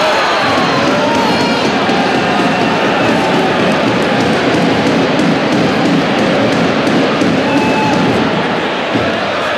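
A large crowd cheers and chatters loudly in a big echoing arena.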